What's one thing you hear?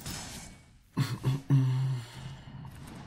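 An electric magical zap crackles sharply.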